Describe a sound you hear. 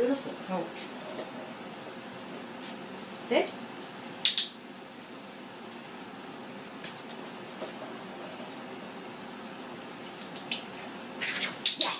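Dog claws click on a tiled floor.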